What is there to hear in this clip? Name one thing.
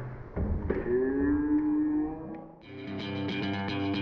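Someone splashes into the water after a dive.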